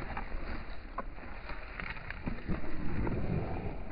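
Gloved hands scrape through loose dry dirt.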